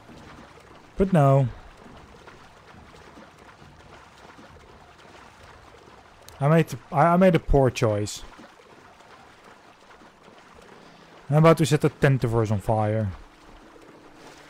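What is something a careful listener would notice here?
Water splashes as a horse swims.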